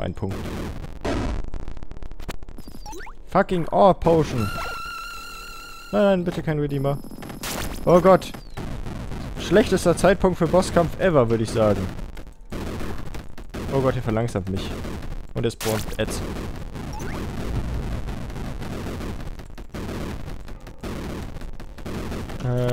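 Rapid gunfire and laser blasts crackle from a video game.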